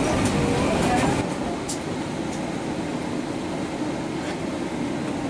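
An airliner's engines drone steadily in a low, even rumble.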